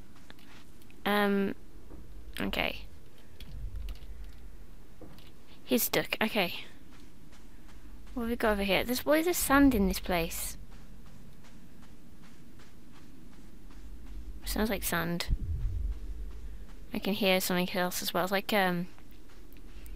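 A young woman talks casually into a headset microphone.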